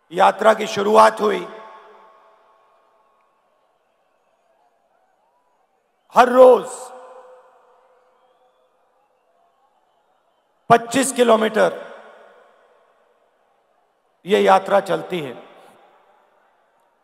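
A man speaks forcefully into a microphone over loudspeakers, in short bursts with long pauses, echoing across a large open space.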